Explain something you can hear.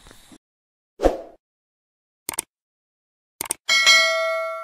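A click sounds as a button is pressed.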